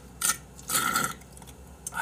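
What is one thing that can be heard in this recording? A man blows into a glass bottle.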